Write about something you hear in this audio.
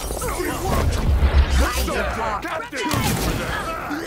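A gun fires a loud blast.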